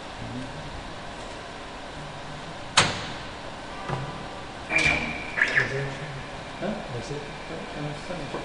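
Keys click on a computer keyboard.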